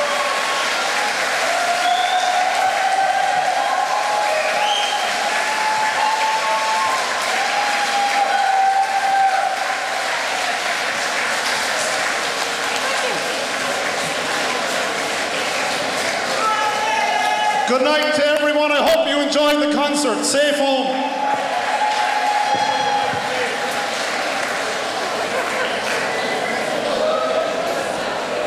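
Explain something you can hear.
A choir sings with the orchestra.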